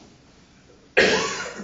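A bass clarinet starts playing loudly.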